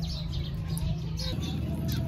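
Liquid drips through a strainer into a bowl.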